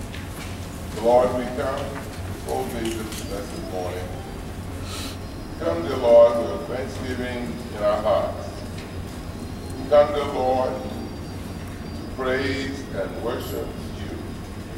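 A man speaks through a microphone in a large echoing hall, in short bursts.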